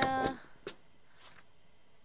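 A rubber stamp thumps down on paper.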